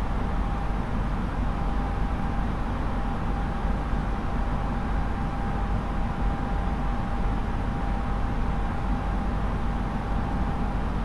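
Jet engines drone steadily, heard from inside a cockpit.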